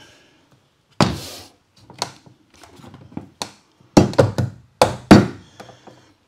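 Plastic parts knock and click as they are fitted together.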